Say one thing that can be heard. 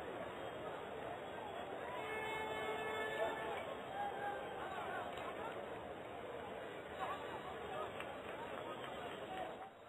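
A large stadium crowd roars and murmurs steadily in the distance.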